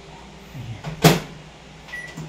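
A microwave door shuts with a clunk.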